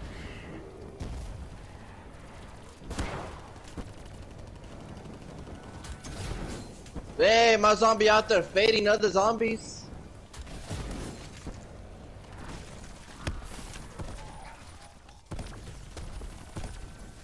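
Gunfire and blasts go off in bursts.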